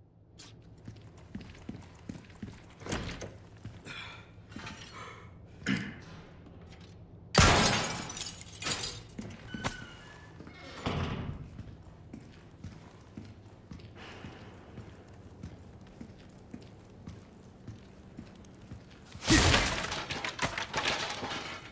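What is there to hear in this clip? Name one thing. Footsteps tread on a stone floor in an echoing hall.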